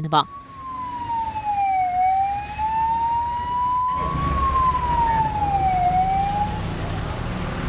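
An ambulance siren wails up and down.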